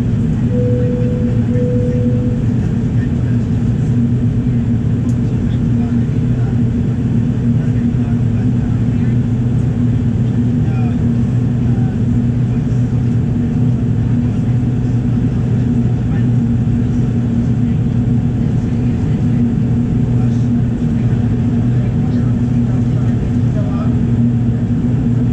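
A jet engine roars steadily with a low, constant drone.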